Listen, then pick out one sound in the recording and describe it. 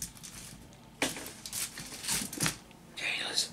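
Aluminium foil crinkles under fingers.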